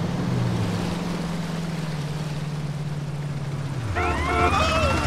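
A motorcycle engine hums steadily, then cuts off.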